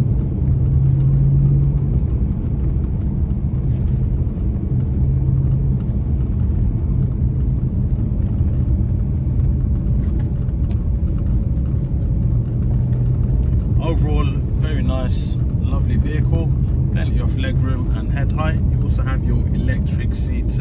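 Tyres roll over a wet road with a low rumble.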